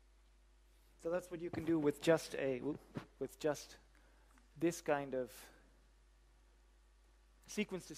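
A man lectures with animation, heard through a microphone.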